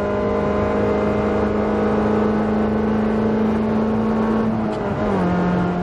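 A small four-cylinder petrol hatchback engine roars at high revs, heard from inside the car.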